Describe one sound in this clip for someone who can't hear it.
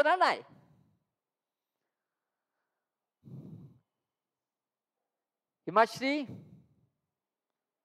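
A middle-aged man speaks calmly into a headset microphone, in short bursts.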